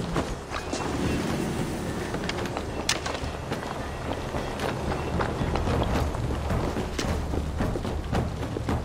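Wind rushes through leafy trees outdoors.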